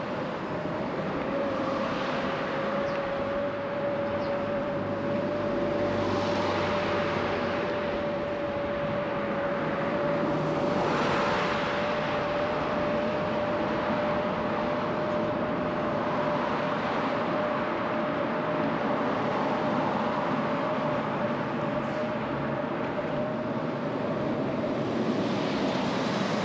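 Traffic rushes past steadily on a road outdoors.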